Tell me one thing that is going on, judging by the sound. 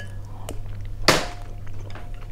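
A woman slurps noodles.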